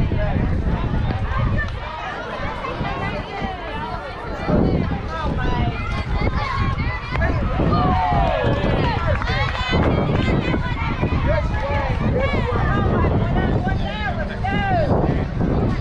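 Young girls cheer and shout excitedly.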